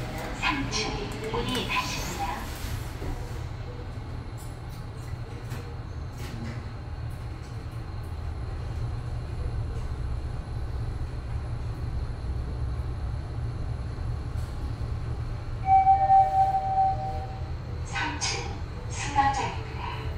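An elevator hums steadily as it rises.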